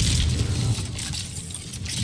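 An electric crackle bursts.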